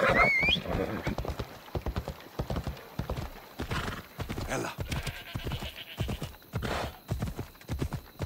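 A horse gallops with hooves thudding on a dirt path.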